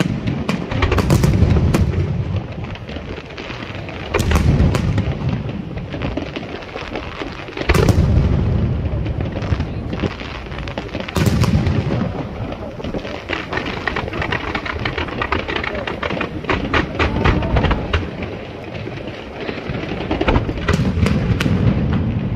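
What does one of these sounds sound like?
Fireworks explode with deep, booming bangs.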